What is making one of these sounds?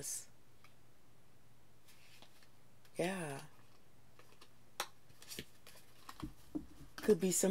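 Cards shuffle and flick in a woman's hands.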